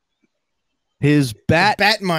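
A man speaks loudly over an online call.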